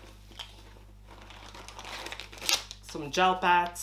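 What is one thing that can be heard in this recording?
Plastic packaging rustles and crinkles.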